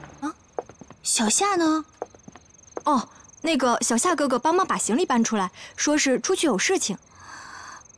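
A young woman speaks close by with surprised animation.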